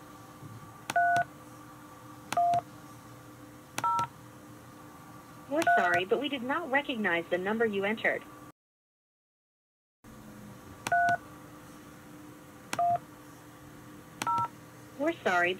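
Phone keypad tones beep as numbers are dialled.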